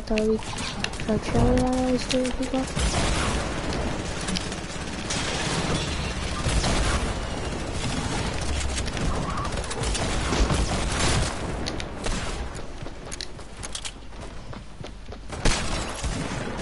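Wooden panels clatter and thud as they are rapidly built.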